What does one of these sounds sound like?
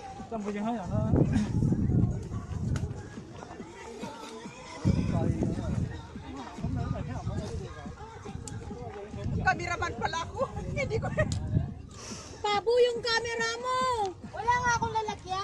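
Young women talk and call out to each other outdoors.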